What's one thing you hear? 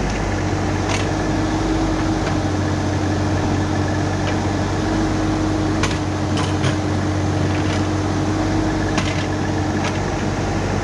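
Metal clanks sharply as an excavator bucket knocks.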